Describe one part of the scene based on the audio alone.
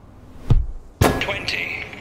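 A ball is struck with a hard thump.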